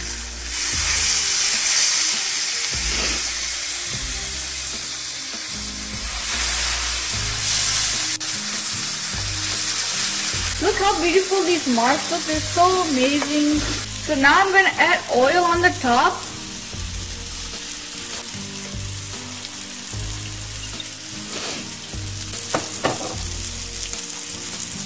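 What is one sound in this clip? Food sizzles and hisses on a hot grill.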